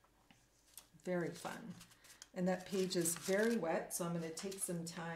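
A woman talks calmly into a microphone.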